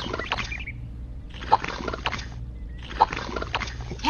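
A small trowel pats and smooths wet cement.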